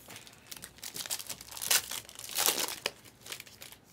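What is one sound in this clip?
Foil wrappers crinkle as packs are torn open.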